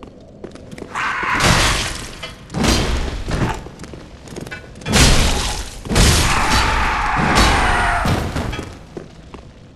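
Swords clash and slash loudly.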